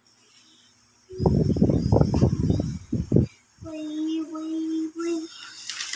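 A paintbrush swishes softly on paper.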